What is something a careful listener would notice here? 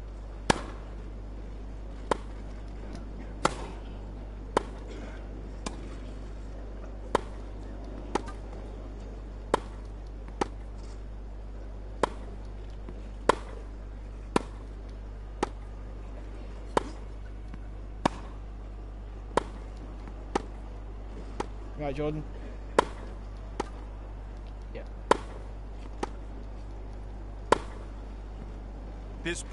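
Tennis balls are struck back and forth with sharp pops of rackets.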